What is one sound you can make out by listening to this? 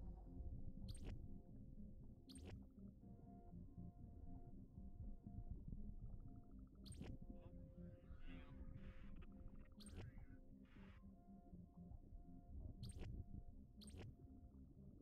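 Menu selections click softly, one at a time.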